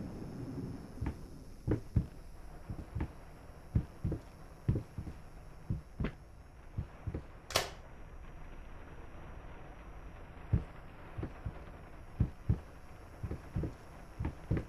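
Footsteps thump slowly on a wooden floor.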